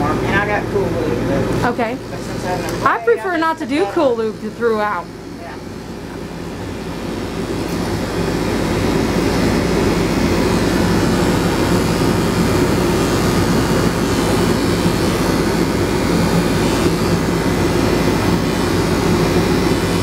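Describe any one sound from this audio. Electric clippers buzz steadily.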